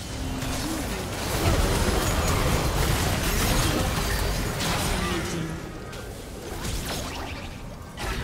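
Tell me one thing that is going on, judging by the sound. Video game spell effects whoosh and crackle in a busy fight.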